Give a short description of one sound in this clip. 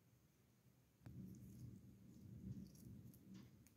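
A spoon stirs and scrapes through food on a metal plate.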